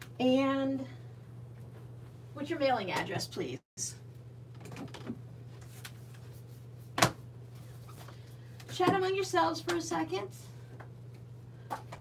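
A book is handled and set down with a soft thud.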